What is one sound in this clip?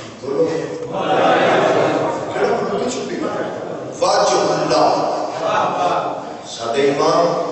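A young man recites passionately into a microphone over loudspeakers.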